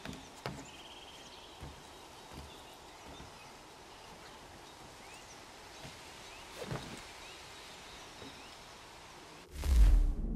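Footsteps tap softly on a tiled roof.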